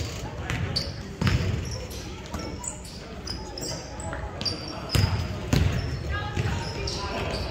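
Young players call out to each other across the gym.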